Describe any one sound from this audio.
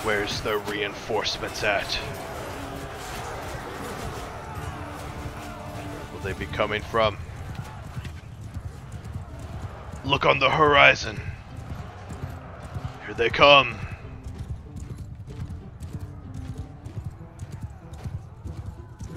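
Horses gallop, hooves drumming on the ground.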